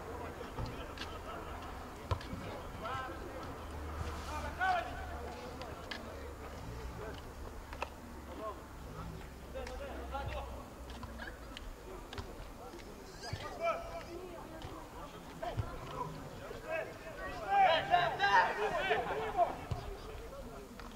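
Men shout across an open outdoor field.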